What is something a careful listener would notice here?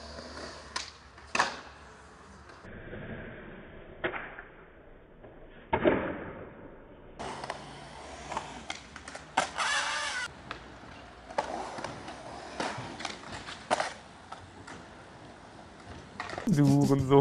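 Skateboard wheels roll and clack on concrete with sharp landings.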